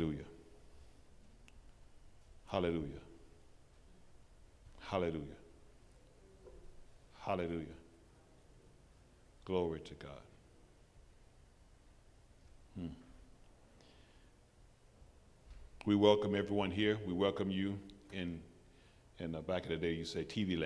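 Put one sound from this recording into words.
A man preaches into a microphone, speaking slowly in short, emphatic phrases with long pauses.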